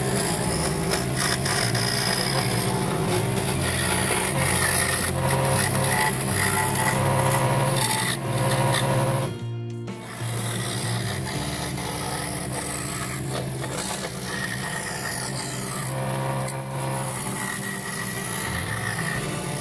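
A scroll saw buzzes steadily as its blade cuts through thin wood.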